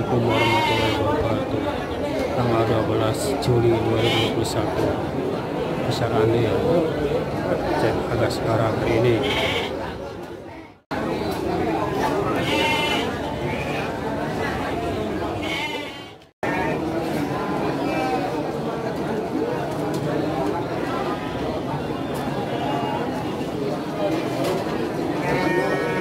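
A crowd of men chatters all around.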